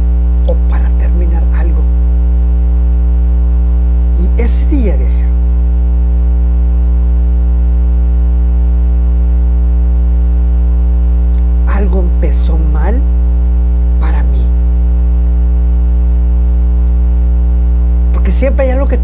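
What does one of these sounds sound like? A man sings softly in short phrases into a close microphone.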